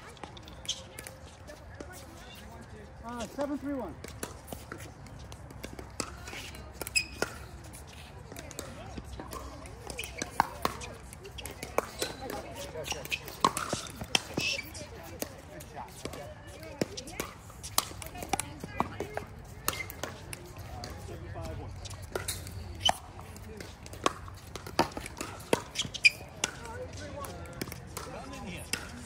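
Paddles pop sharply against a plastic ball, over and over, outdoors.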